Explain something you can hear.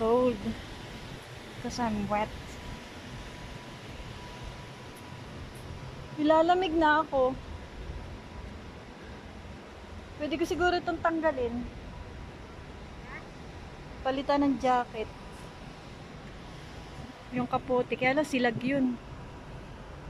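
A middle-aged woman speaks close by in short bursts with pauses between.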